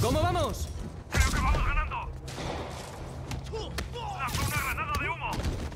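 Punches and kicks thud in quick succession.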